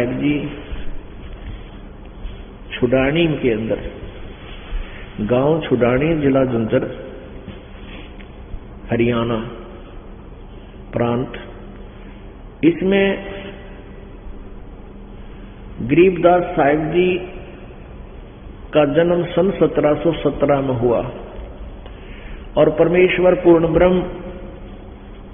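An elderly man chants in a sing-song voice through a microphone, in short bursts with pauses.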